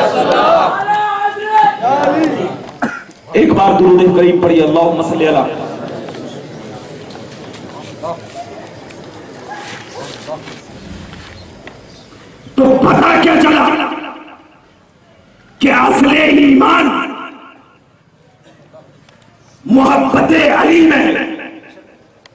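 A man sings a chant loudly through a microphone, echoing over loudspeakers.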